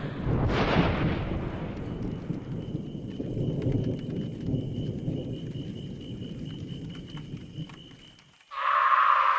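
A campfire crackles.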